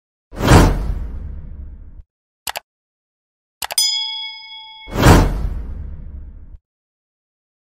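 A deep whooshing burst booms and fades.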